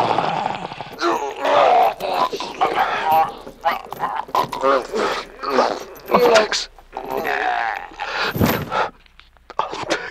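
A man speaks emotionally, close by.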